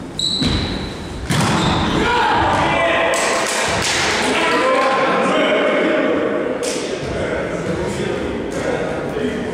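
A volleyball is struck with sharp, echoing smacks.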